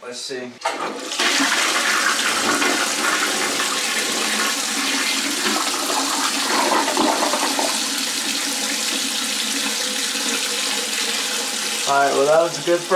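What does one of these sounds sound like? A toilet flushes with rushing, gurgling water.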